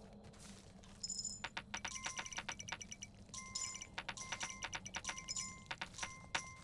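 Coins clink and jingle in quick bursts, with bright chiming tones.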